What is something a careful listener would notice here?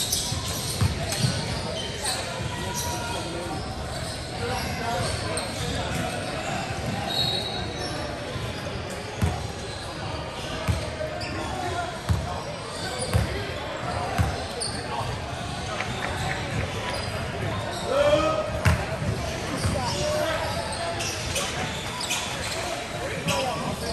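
Young players shout across a large echoing gym.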